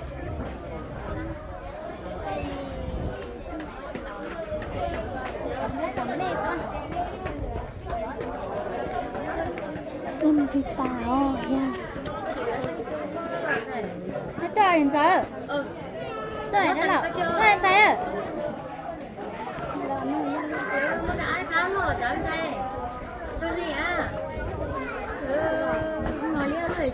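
Several women and men talk and laugh nearby, outdoors.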